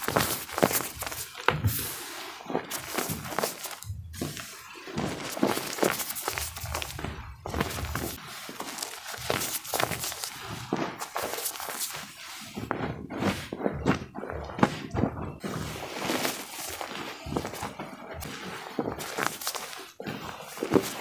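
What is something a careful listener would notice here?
Hands squeeze and scrunch soft powder with crisp crunching and rustling.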